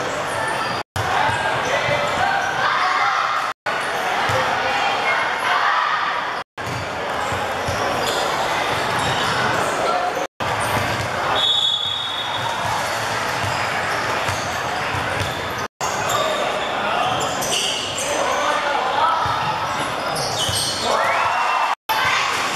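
A crowd of girls and adults chatters in a large echoing hall.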